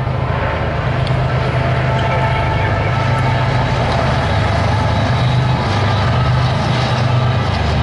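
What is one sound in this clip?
A diesel locomotive rumbles loudly as it crosses a bridge nearby.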